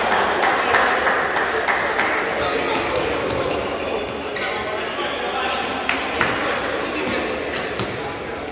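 A futsal ball is kicked on an indoor court.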